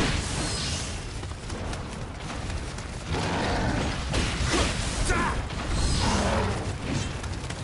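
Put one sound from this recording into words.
Blades clash and slash in quick strikes.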